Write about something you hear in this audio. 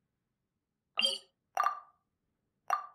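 Soft menu clicks sound a few times.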